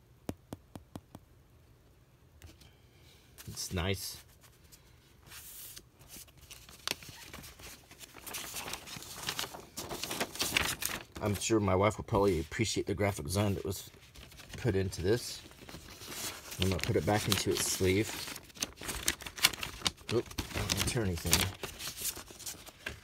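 Paper sleeves rustle and crinkle as hands handle them.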